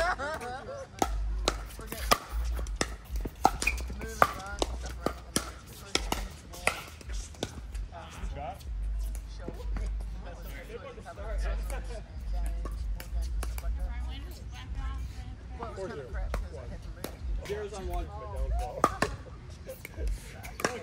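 Paddles strike a plastic ball with sharp pops.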